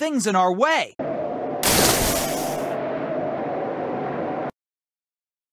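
A whirlwind roars with a steady rushing whoosh.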